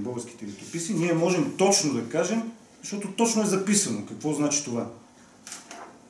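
A middle-aged man speaks calmly and clearly nearby.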